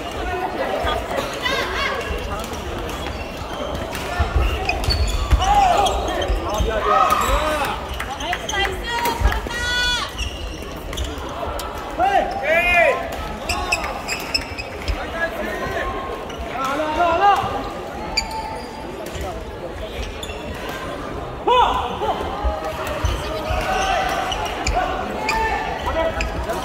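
Shoes squeak on the floor.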